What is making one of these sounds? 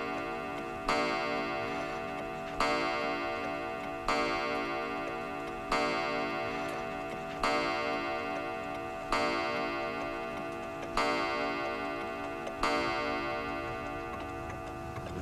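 A clock chimes slowly eight times, each stroke ringing out and fading.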